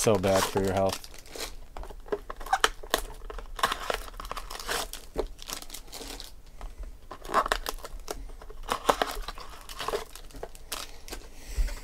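Foil wrappers crinkle and tear.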